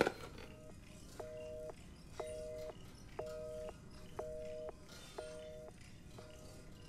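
A ringing tone beeps steadily through a telephone handset.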